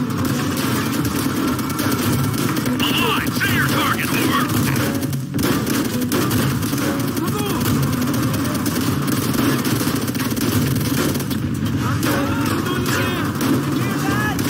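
Gunfire crackles in rapid bursts nearby.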